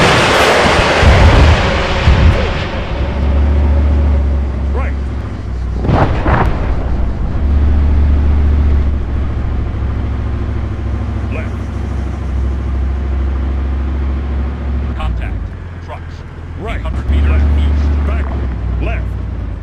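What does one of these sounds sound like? A heavy tracked vehicle engine rumbles steadily.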